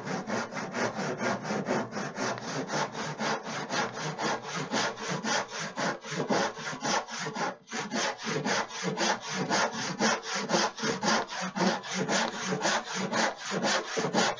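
A hand saw cuts through wood with quick, steady strokes.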